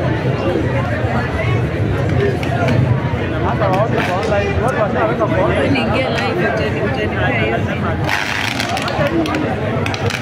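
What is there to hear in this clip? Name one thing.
A large crowd murmurs and shouts outdoors.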